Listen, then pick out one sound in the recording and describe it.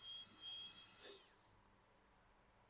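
A dental drill winds down and stops.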